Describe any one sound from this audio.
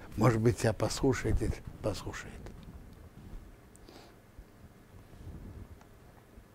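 An elderly man speaks calmly and closely into a microphone, pausing between phrases.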